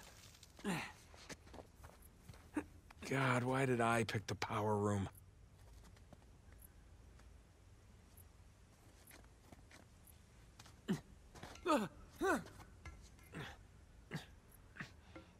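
Hands grab and scrape against stone ledges.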